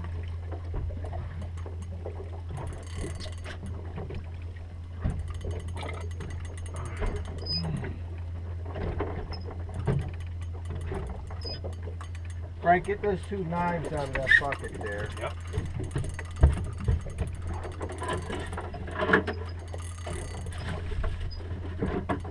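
A boat engine hums steadily outdoors on open water.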